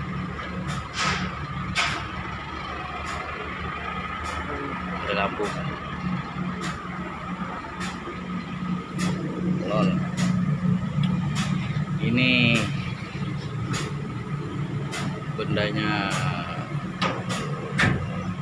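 A large diesel engine idles with a steady low rumble close by.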